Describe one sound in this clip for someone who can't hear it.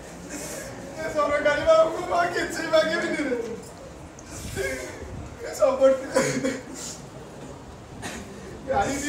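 A second man speaks loudly nearby.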